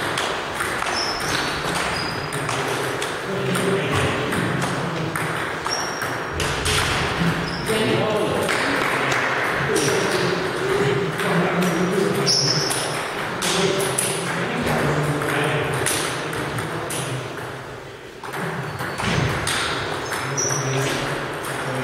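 Ping-pong balls tap on tables and paddles in an echoing hall.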